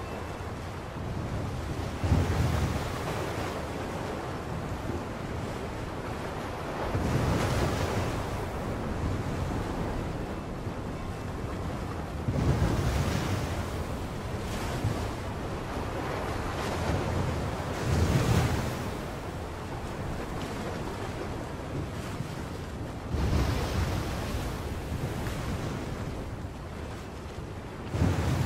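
Stormy waves surge and crash loudly in recurring swells.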